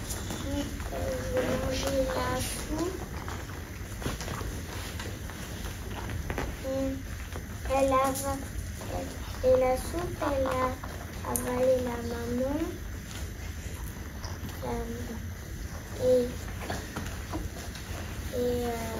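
A young boy talks calmly and close by, in short phrases.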